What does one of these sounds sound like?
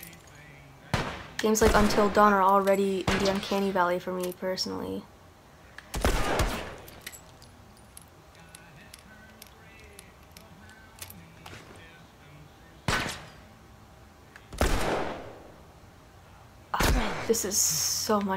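Gunshots fire loudly in sharp bursts.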